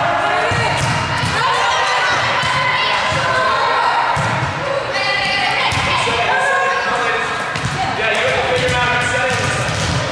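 A volleyball is hit with a sharp smack.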